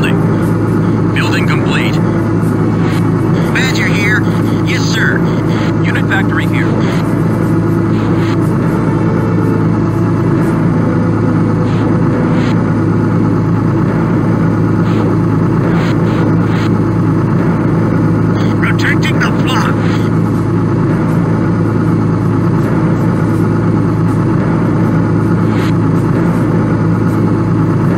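A vehicle engine hums steadily in a low drone.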